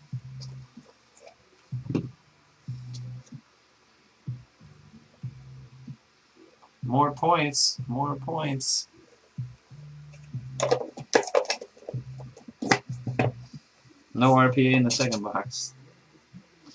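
Cardboard boxes and stacks of cards rustle and tap as hands handle them.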